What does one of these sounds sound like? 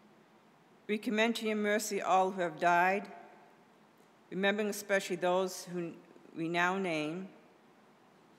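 A woman reads aloud calmly into a microphone, in short phrases.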